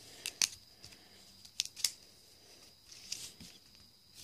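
Playing cards tap and flick together as a hand shuffles them.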